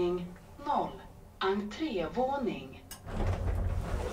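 Elevator doors slide open with a low rumble.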